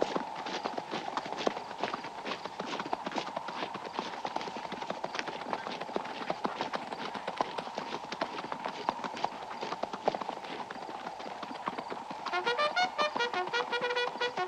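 Horses' hooves thud slowly on packed dirt.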